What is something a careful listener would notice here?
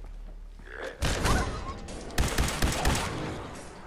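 A laser rifle fires rapid, crackling shots.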